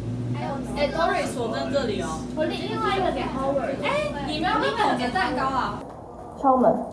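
A young woman talks with animation nearby.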